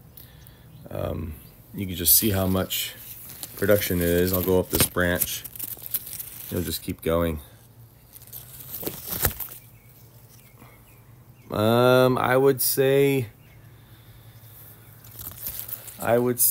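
A man talks calmly through an online call.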